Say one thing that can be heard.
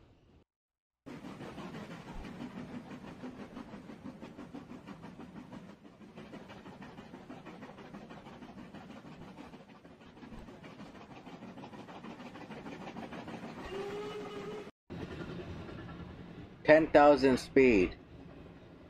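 A train engine rumbles steadily as it rolls along the tracks.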